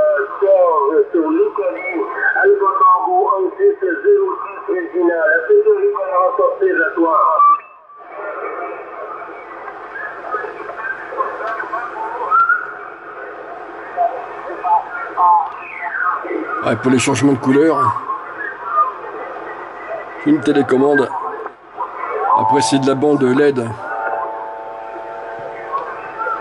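A radio receiver hisses with static.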